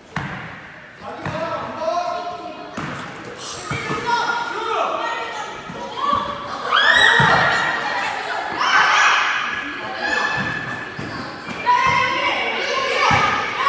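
Young boys shout and call out during play.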